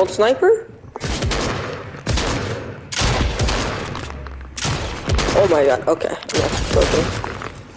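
Shotgun blasts boom several times in quick succession.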